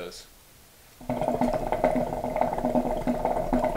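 Water bubbles loudly in a water pipe.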